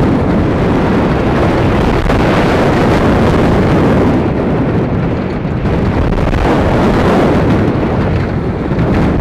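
A roller coaster train rumbles and rattles along its track.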